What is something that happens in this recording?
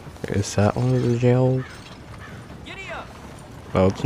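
A horse-drawn wagon rolls by on a dirt road.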